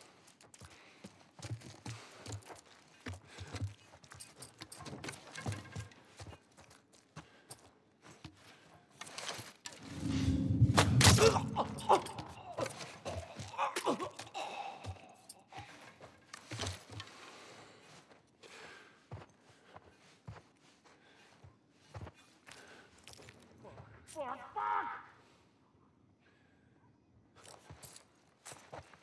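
Footsteps creak softly on wooden stairs and floorboards.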